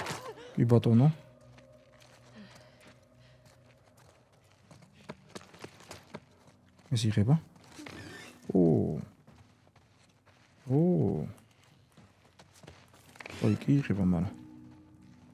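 A man speaks in short bursts into a close microphone.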